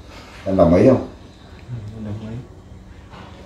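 A man speaks calmly nearby in short phrases.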